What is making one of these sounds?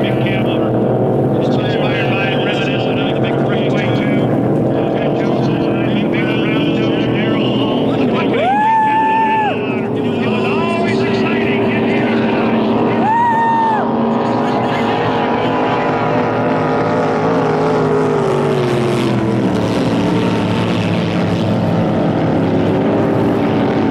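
Racing boat engines roar across the water.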